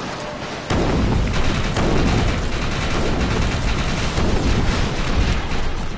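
Heavy gunfire rumbles and booms without a break.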